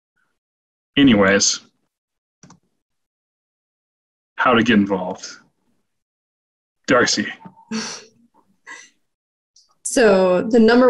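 A young man speaks calmly into a microphone over an online call, in short bursts with pauses.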